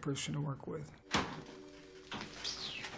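A refrigerator door clunks open.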